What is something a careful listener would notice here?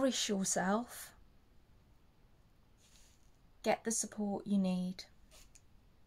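A young woman speaks calmly and close to a microphone, in short bursts.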